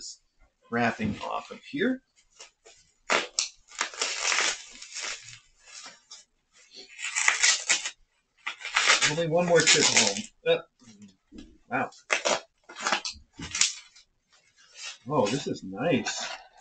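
Paper and packaging rustle and crinkle.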